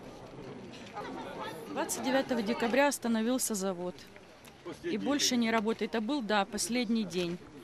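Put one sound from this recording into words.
A middle-aged woman speaks with animation into a microphone close by.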